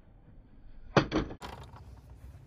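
A shotgun action clicks open.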